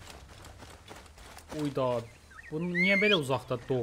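Footsteps pad softly on grass.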